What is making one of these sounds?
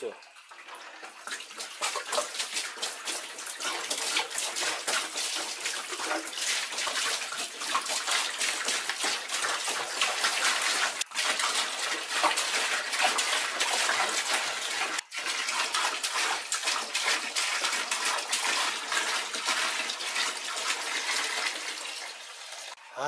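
Water pours and splashes into a plastic tub.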